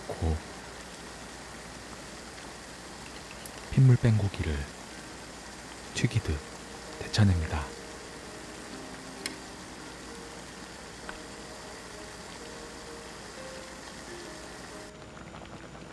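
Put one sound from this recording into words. Water bubbles and boils steadily in a pot.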